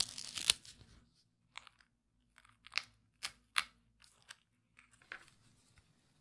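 Small pins tap and click as they are pushed into foam.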